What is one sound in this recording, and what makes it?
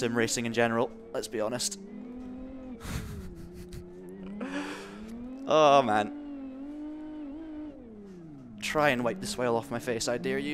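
A man talks with animation into a headset microphone.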